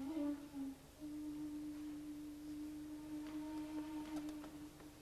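A wooden flute plays a few short notes, then a long, breathy held note.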